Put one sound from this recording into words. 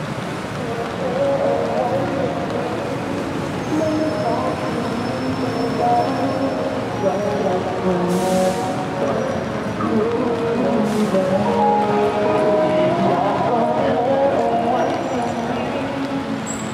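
Adults chat nearby as they walk past.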